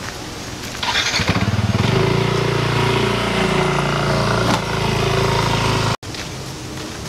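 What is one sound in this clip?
A motor scooter engine starts and rumbles as it rides off.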